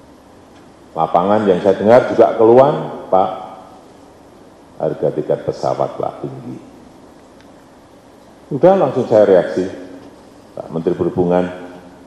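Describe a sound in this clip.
A middle-aged man speaks calmly and deliberately into a microphone.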